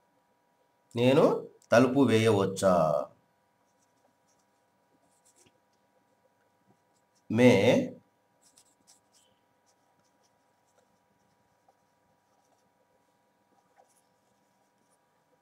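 A marker scratches and squeaks faintly on a whiteboard.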